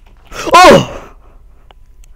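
A young man lets out a high, falling cry into a headset microphone.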